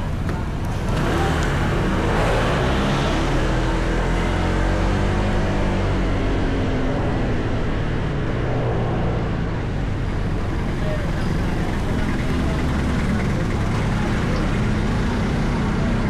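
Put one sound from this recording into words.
A scooter engine hums and revs as the scooter rides along a street.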